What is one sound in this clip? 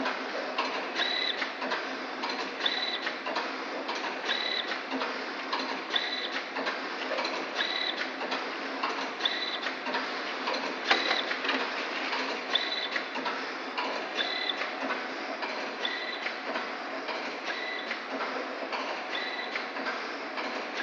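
A machine beeps in short regular tones.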